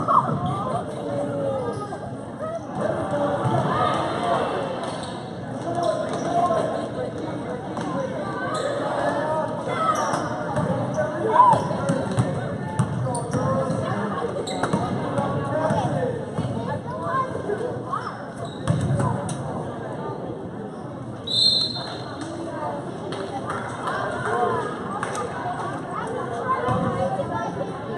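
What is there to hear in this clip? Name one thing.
A crowd of spectators chatters throughout, echoing in a large hall.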